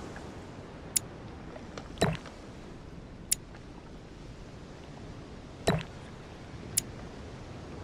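A game menu clicks and chimes as options are picked.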